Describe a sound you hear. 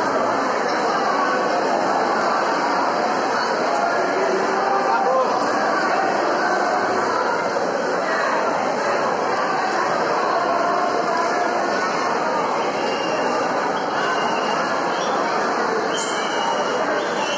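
A large crowd chatters and calls out in a large echoing hall.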